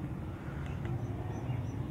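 A handheld signal meter beeps softly.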